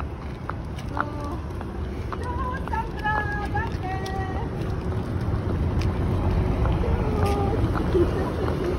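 Car horns honk repeatedly.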